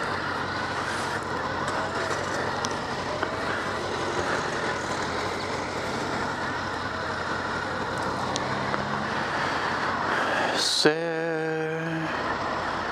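Wind buffets noisily against a helmet.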